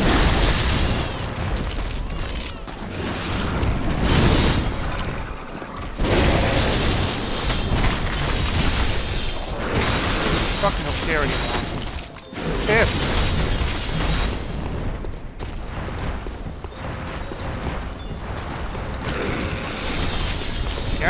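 Blades swing and clash in a fight.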